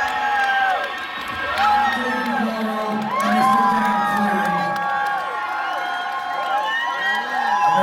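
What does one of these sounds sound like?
A man sings into a microphone, heard loudly through loudspeakers in a large echoing hall.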